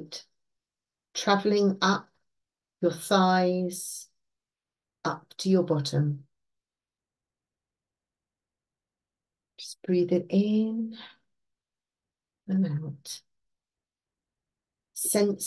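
An older woman speaks calmly and slowly through an online call microphone, with long pauses.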